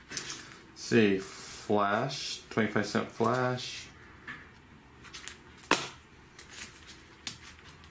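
Plastic sleeves rustle and crinkle as they are handled.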